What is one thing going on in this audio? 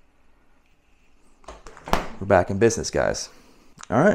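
A refrigerator door thumps shut.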